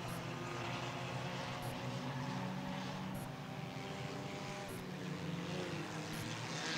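Race car engines roar steadily around an outdoor track.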